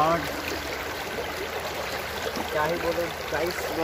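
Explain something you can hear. Water rushes and splashes over rocks.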